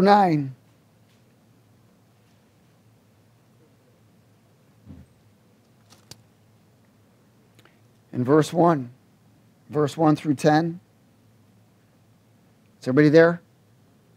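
A man speaks slowly through a headset microphone, with long pauses.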